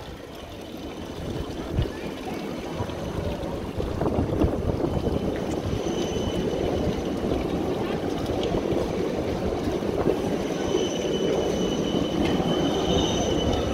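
A tram rolls past close by.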